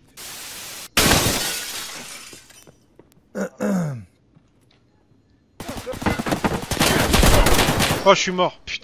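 A rifle fires loud bursts of gunshots.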